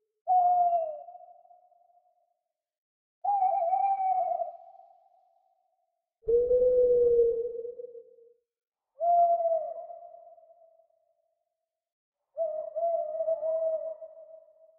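An owl hoots in long, low calls with pauses between them.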